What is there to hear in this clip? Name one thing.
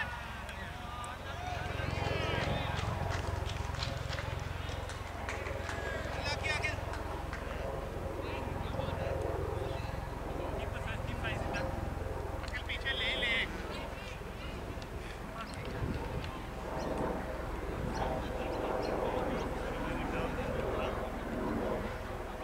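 Men talk and call out to each other at a distance.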